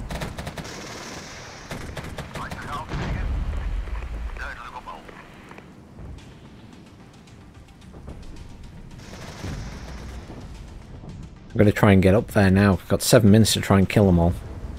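Gunfire crackles in bursts in the distance.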